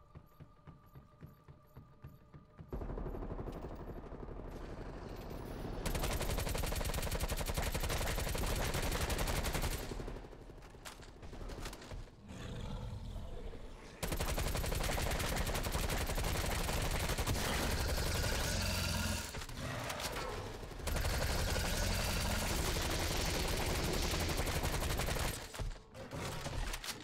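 A woman talks with animation into a microphone.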